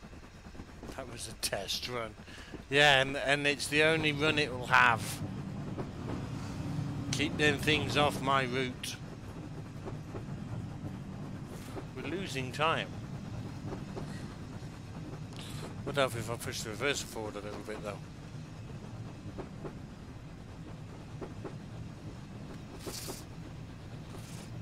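A steam locomotive chuffs steadily as a train runs along.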